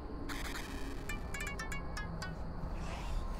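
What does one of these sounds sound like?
An arcade machine plays quick electronic beeps and jingles.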